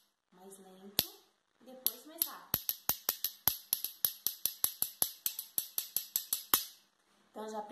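A young woman speaks close to a microphone with animation.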